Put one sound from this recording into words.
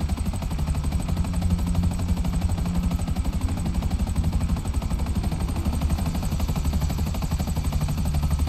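Helicopter rotor blades thump rapidly and steadily.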